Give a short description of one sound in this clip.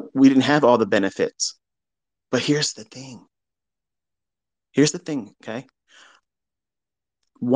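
A man speaks calmly, close to a microphone, in short phrases with pauses.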